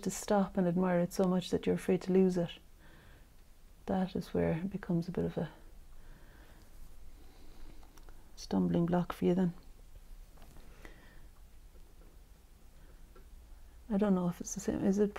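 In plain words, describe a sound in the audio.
A woman talks calmly and close by, in short bursts with pauses.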